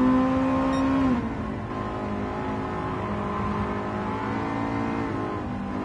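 A car engine roars steadily, dropping in pitch as the car slows down.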